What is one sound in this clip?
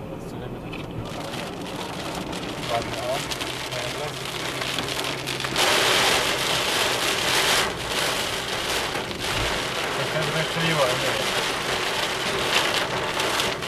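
Heavy rain drums on a car windshield, growing louder.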